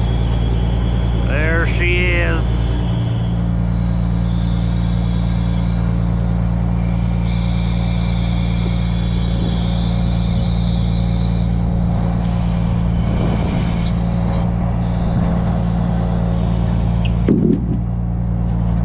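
A diesel engine runs steadily close by.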